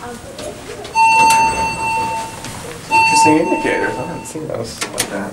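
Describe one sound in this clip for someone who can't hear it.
An elevator chime rings twice with a steady tone.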